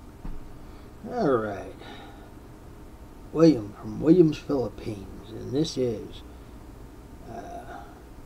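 An older man speaks calmly and close by, in short bursts.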